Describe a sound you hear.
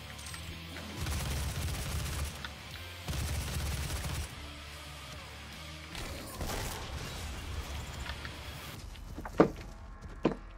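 Rapid gunfire blasts in bursts.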